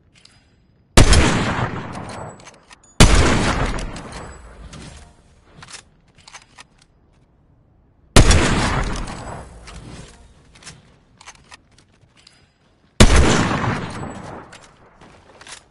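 A sniper rifle fires loud, sharp shots that echo away.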